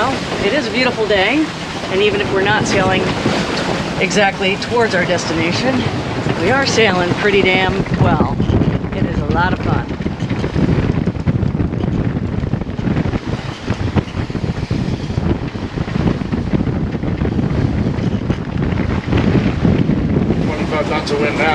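Strong wind buffets the microphone.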